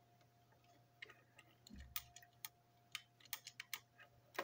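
A small screwdriver clicks and scrapes on a plastic toy engine.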